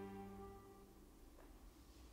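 An accordion holds a final chord and then stops.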